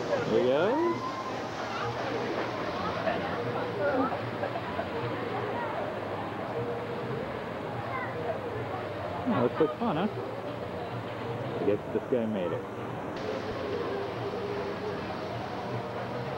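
A crowd of people chatter and shout in the distance outdoors.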